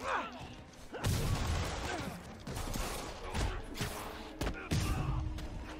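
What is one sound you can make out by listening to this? Heavy punches and kicks land with thuds and cracks.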